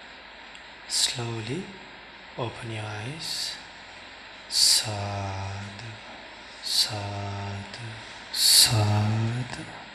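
A man chants slowly in a low voice through a microphone, in short phrases with pauses.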